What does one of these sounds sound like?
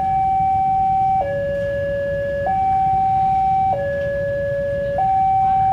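A level crossing alarm sounds steadily in two alternating tones.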